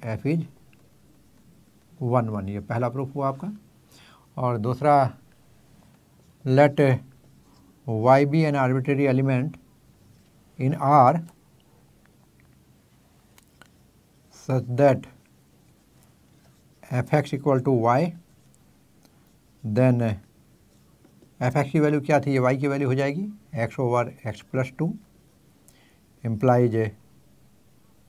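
An elderly man speaks calmly and explains, close by, with pauses.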